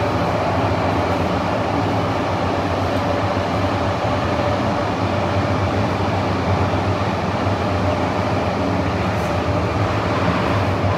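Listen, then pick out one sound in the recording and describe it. A train rumbles and hums steadily as it runs along the track.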